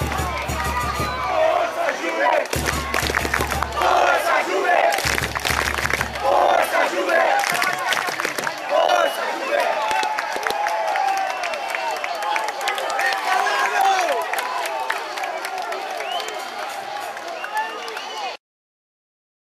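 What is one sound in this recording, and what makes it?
A large crowd of fans chants and sings loudly outdoors.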